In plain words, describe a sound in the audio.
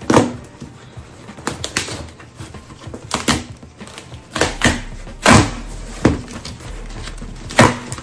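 Cardboard flaps rustle and thump as a box is handled.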